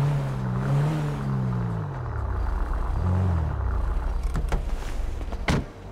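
A car engine revs and hums as the car drives slowly.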